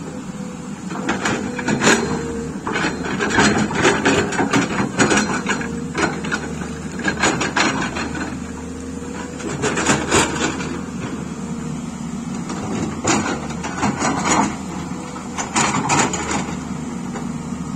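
Rocks scrape and clatter in an excavator's bucket.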